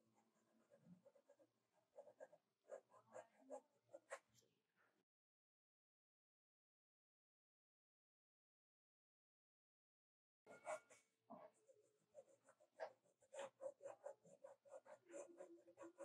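A pencil scratches and sketches on paper.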